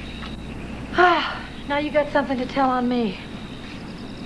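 A woman exclaims.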